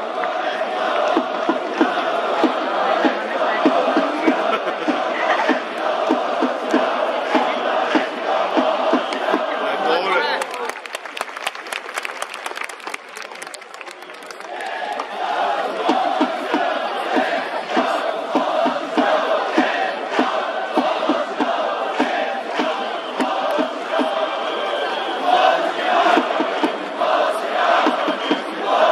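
A large stadium crowd chants and cheers in rhythm.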